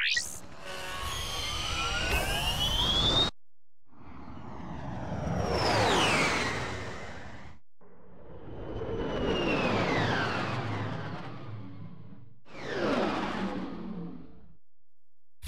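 A spaceship engine roars and whooshes past in repeated swells, with a falling pitch.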